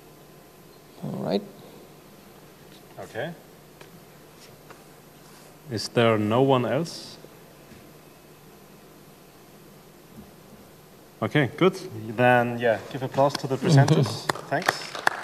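A man speaks briefly through a microphone in a large echoing hall.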